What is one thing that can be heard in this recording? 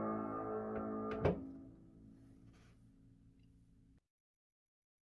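A piano note rings out and fades over an online call.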